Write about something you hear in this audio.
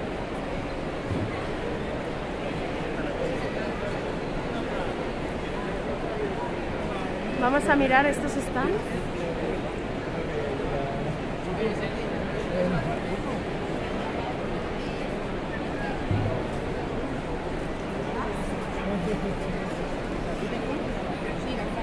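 A crowd of people chatter all around in a large echoing hall.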